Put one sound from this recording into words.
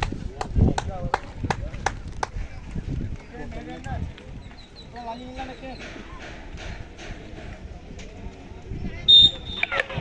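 Men talk and call out across an open field outdoors.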